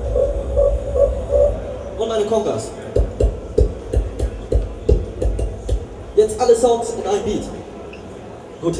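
A young man beatboxes punchy beats into a microphone, loud through loudspeakers.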